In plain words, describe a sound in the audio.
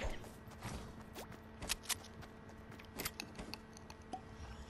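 Wooden planks clack sharply into place.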